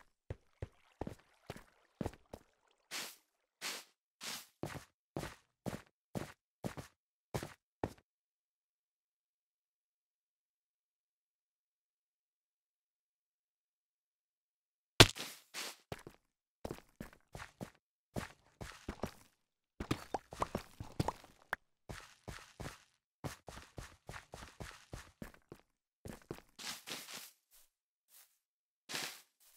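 Footsteps tap on stone in short bursts.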